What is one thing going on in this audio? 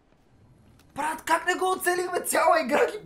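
A young man shouts loudly in frustration close to a microphone.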